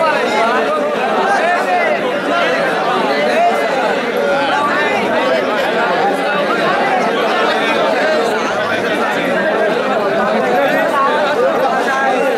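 A large crowd of men chants and shouts loudly outdoors.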